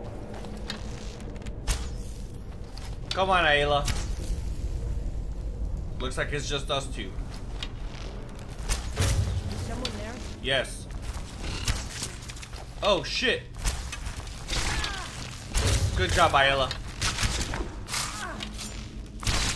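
A bowstring twangs as arrows are shot.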